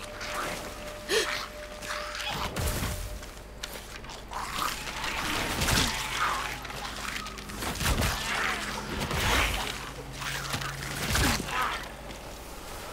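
A young man talks through a microphone with animation.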